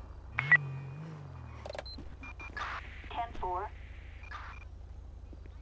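A police siren gives short chirps and yelps.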